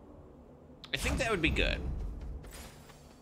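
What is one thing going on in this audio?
A loud video game effect bursts with a rumbling boom.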